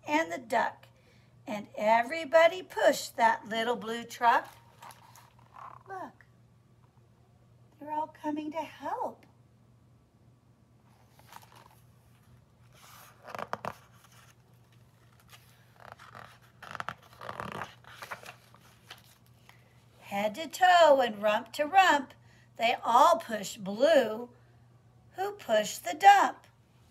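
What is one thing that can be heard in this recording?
A woman reads a story aloud, close by.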